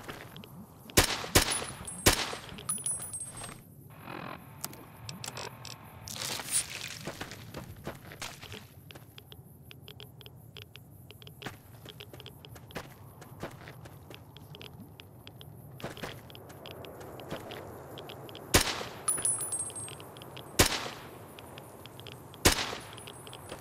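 Rifle shots crack sharply, one at a time.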